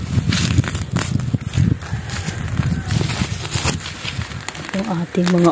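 Weeds rustle and crackle as a hand pulls through them up close.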